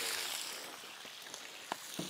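Fish sizzle in hot frying pans.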